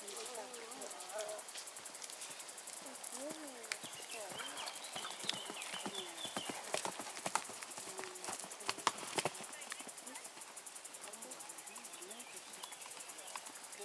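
A horse's hooves thud on grass as it canters.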